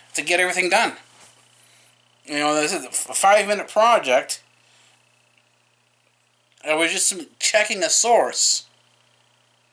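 A middle-aged man speaks calmly and close to the microphone, in short bursts with pauses.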